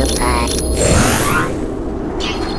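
A magical chime shimmers and rings out.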